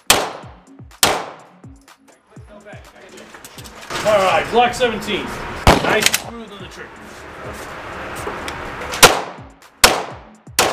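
Pistol shots ring out loudly, echoing in an indoor range.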